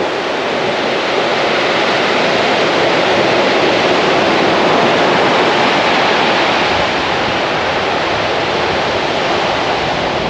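Waves crash and wash up on a pebble beach.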